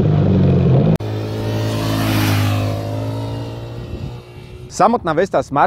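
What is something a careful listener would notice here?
A motorcycle roars past on a road.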